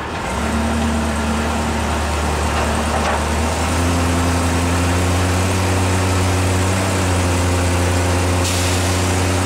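A car-hauler truck's engine idles with a deep, steady hum.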